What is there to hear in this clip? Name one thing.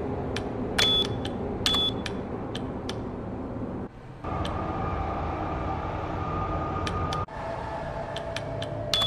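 Electronic keypad buttons beep and click as they are pressed.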